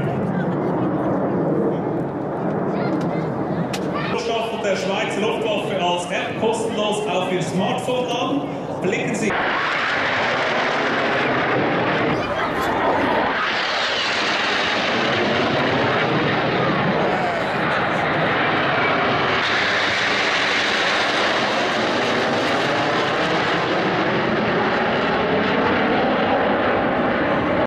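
Jet engines roar loudly overhead.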